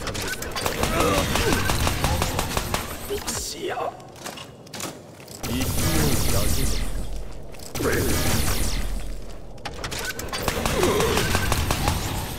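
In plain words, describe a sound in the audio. Blades slash and strike in a fight.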